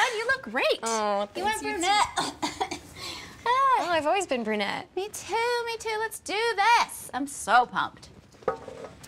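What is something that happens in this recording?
Two young women greet each other with excited, laughing voices close by.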